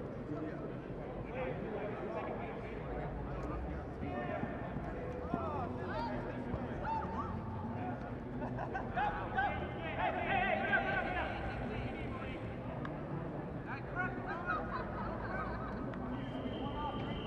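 Young men shout and call out to each other in a large, open, echoing space.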